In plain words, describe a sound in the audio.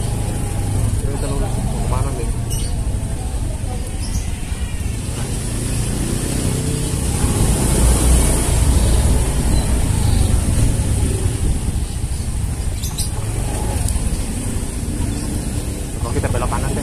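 A motorcycle engine hums steadily close by while riding slowly.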